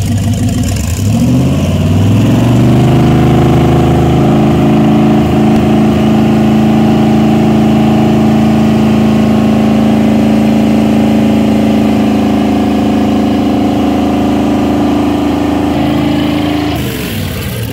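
A large boat engine starts up, revs and roars steadily.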